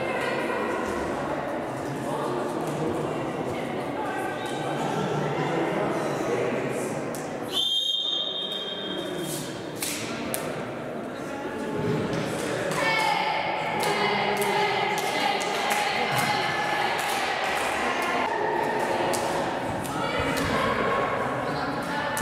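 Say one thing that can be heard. Young girls talk and chatter together in a large echoing hall.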